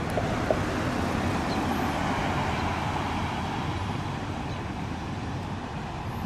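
A pickup truck drives past on the road.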